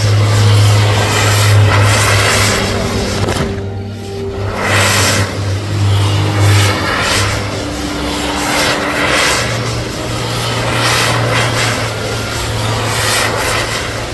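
Fireworks hiss and crackle loudly as they shoot out showers of sparks.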